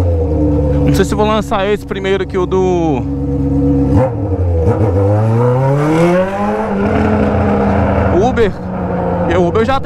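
An inline-four motorcycle with a straight-pipe exhaust revs sharply.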